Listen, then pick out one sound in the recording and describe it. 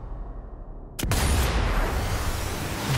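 A rifle fires a loud shot that booms and echoes.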